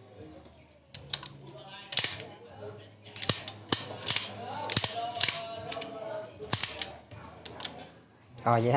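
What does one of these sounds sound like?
Plastic switches click sharply as a hand presses handlebar controls.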